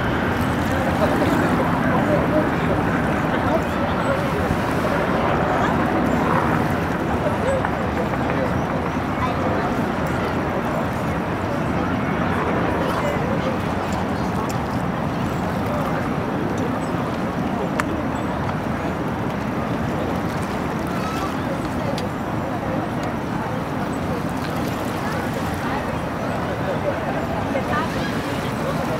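Wind blows over the water.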